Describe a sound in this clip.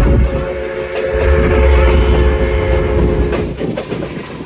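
A steam locomotive whistle blows loudly in the distance.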